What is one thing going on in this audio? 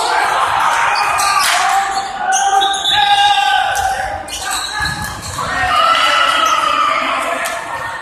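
Young men shout and cheer with excitement in a large echoing hall.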